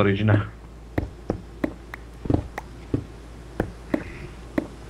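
A pickaxe chips at stone with short, regular knocks.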